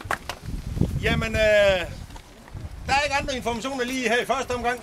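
A middle-aged man speaks loudly to a group outdoors.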